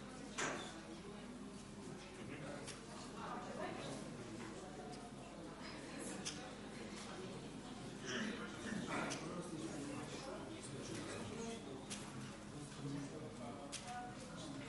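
Several people talk quietly at a distance in a large room.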